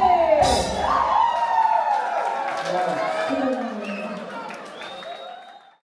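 A live band plays amplified music loudly in a room.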